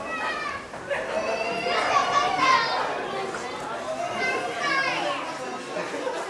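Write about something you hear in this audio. Adults talk nearby in a large hall.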